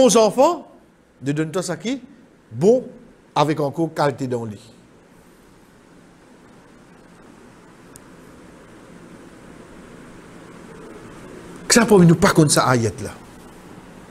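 A man speaks calmly into a close microphone, with pauses.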